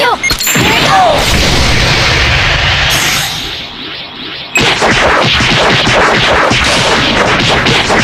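Heavy punches and kicks thud rapidly.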